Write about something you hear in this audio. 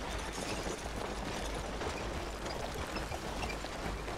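Carriage wheels rattle past.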